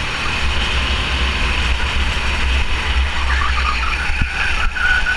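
A go-kart engine drones loudly up close.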